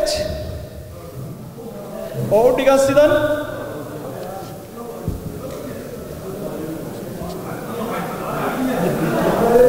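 A middle-aged man speaks steadily into a microphone, heard through loudspeakers.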